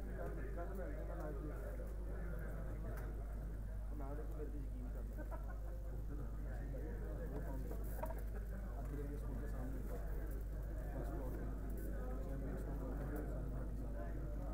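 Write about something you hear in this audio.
A crowd of men chatters and murmurs nearby, indoors.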